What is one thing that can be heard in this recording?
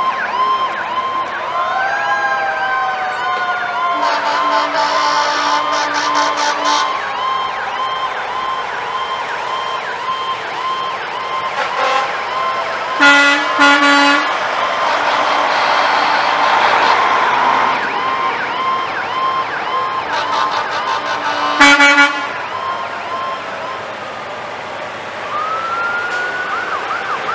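Sirens wail up and down from the passing trucks.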